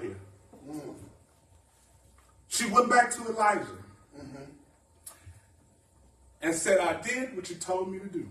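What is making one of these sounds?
A man preaches with animation into a microphone, in bursts with pauses.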